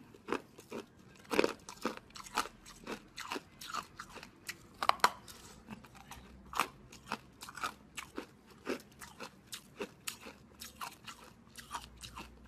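A young woman bites and chews close to a microphone, with wet crackling sounds.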